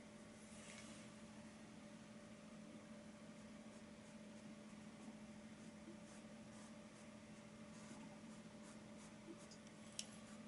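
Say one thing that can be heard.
A paintbrush softly brushes across a canvas.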